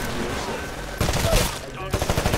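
An automatic rifle fires a burst of shots.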